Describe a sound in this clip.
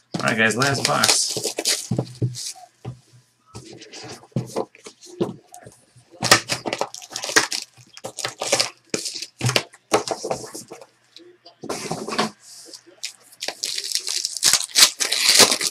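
Cards and packaging rustle and tap as hands handle them.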